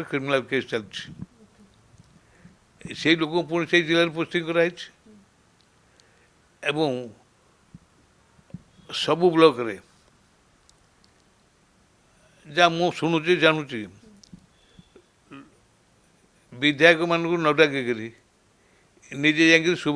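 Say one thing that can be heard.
An elderly man speaks slowly into a close microphone, in bursts with long pauses.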